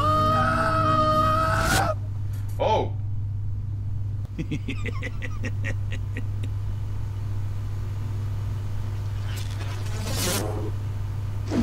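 Cartoonish video game sound effects and music play.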